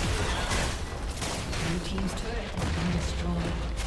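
A tower crumbles with a heavy crash.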